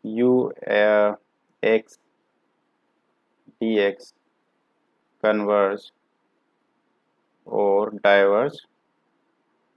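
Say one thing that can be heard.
A man speaks calmly in short phrases into a close microphone, with pauses between them.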